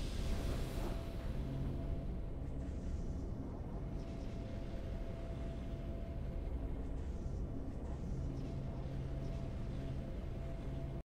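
Triumphant game music plays steadily.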